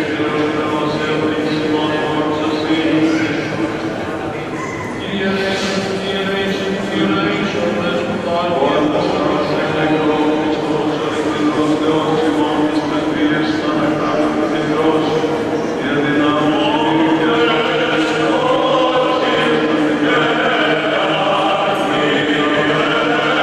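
Men's voices chant together in a slow, sustained melody, echoing through a large reverberant hall.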